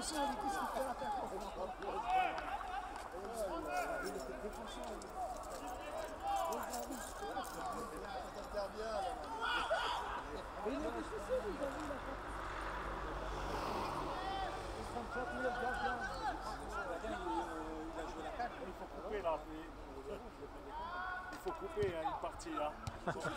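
Men shout and call out across an open outdoor field.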